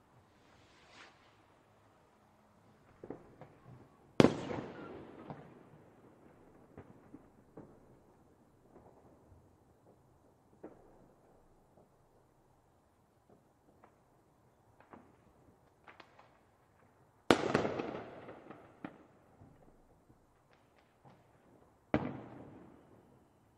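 Fireworks crackle and pop in the distance.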